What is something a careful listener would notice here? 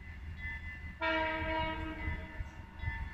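A train horn blows once, loud and close.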